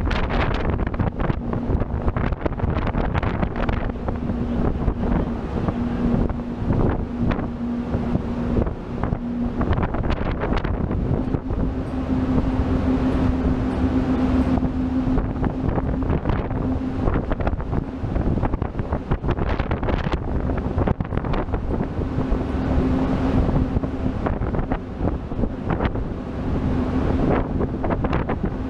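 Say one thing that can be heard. Waves wash and splash against a boat's hull.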